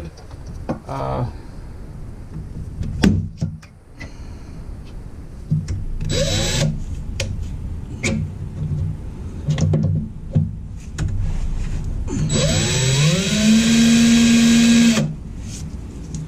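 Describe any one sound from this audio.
An oil filter scrapes and clicks as hands twist it onto a fitting.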